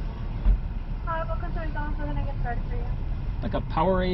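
A middle-aged man speaks calmly inside a car.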